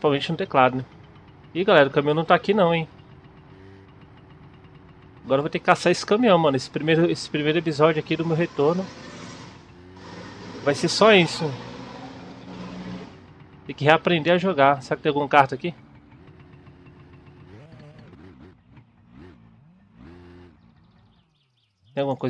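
A small motorbike engine putters steadily, rising and falling.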